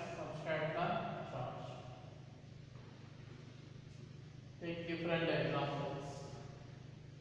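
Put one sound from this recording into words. A middle-aged man speaks calmly in short bursts.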